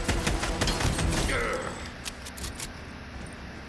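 A shotgun fires in rapid bursts.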